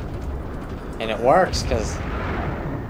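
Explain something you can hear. A man speaks briefly through a recording.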